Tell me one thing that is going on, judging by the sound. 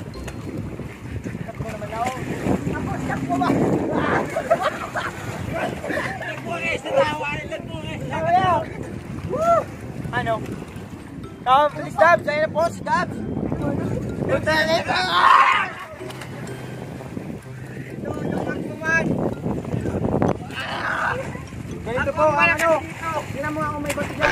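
Young men shout and laugh excitedly outdoors.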